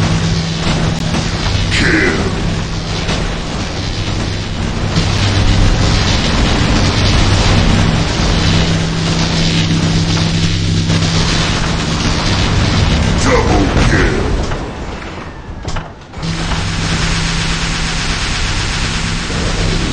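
A robot's heavy footsteps thud and clank.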